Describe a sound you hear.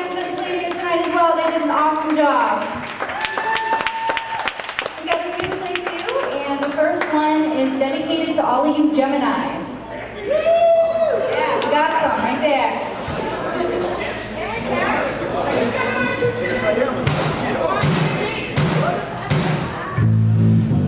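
A young woman sings through a microphone over loudspeakers in a large echoing hall.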